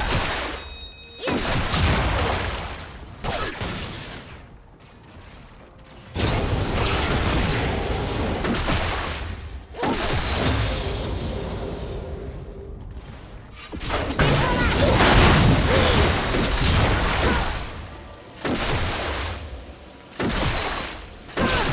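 Game spells burst and clash during a fight.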